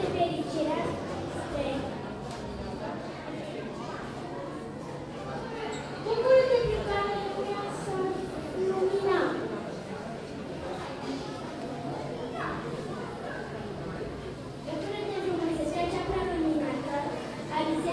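A young girl recites into a microphone in an echoing hall.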